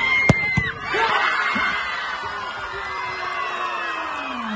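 A large crowd erupts in loud cheering.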